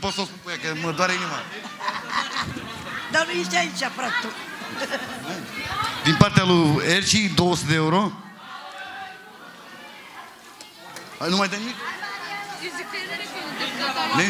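A woman sings loudly through a microphone and loudspeakers.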